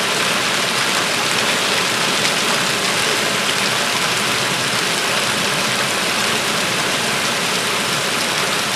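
Heavy rain pours steadily, splashing onto the ground.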